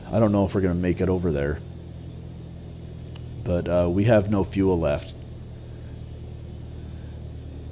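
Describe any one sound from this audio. A light aircraft's engine drones steadily.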